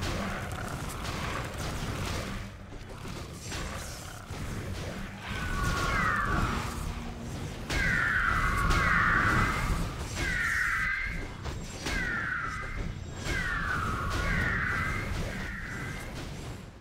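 Blades swish and strike in rapid combat.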